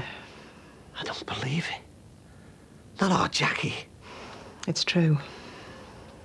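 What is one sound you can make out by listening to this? A middle-aged woman speaks earnestly, close by.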